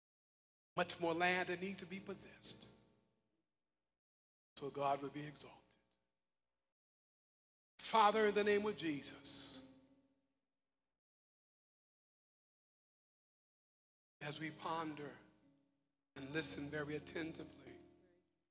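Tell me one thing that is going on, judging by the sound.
A man speaks slowly and emphatically into a microphone, with pauses, in a large echoing room.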